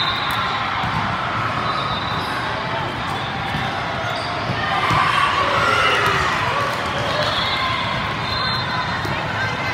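Many voices chatter and cheer in a large echoing hall.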